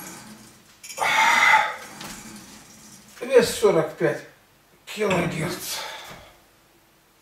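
An elderly man breathes hard and groans with effort nearby.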